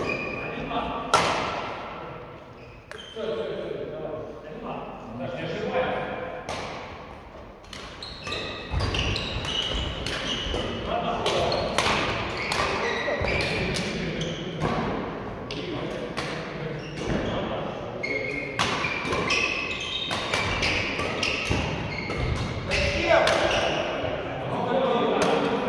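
Rackets hit shuttlecocks with sharp pops, again and again, in a large echoing hall.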